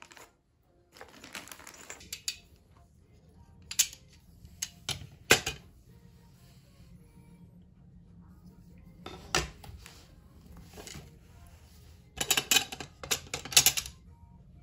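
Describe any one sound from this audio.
Metal drawer rails click and clack.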